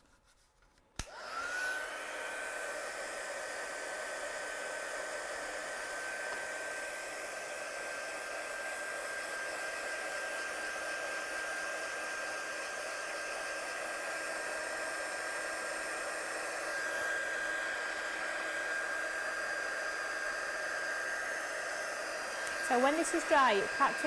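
A heat gun blows with a steady, loud whirring hum.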